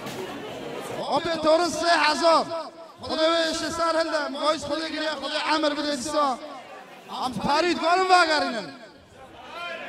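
A man speaks loudly and with animation into a microphone, heard through loudspeakers.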